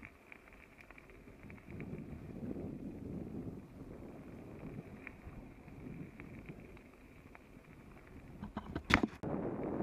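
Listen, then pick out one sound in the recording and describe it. Tyres crunch and rattle over a gravel track.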